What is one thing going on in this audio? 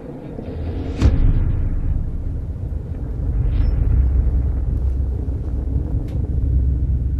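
A deep rumble of explosions rolls on.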